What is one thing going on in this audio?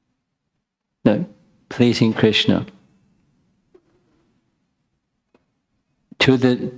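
An elderly man speaks calmly into a microphone, in pauses.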